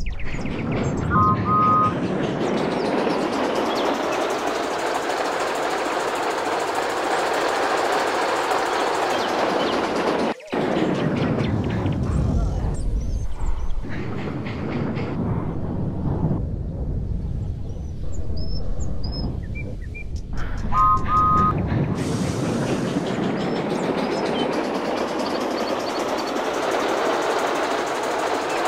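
A steam locomotive in a video game chuffs as it pulls a train.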